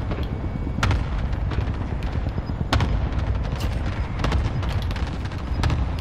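A helicopter whirs overhead.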